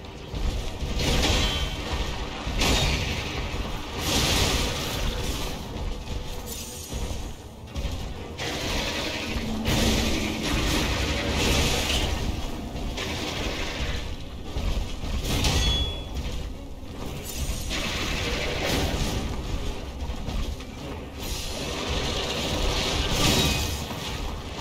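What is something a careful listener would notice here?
A monster growls and roars.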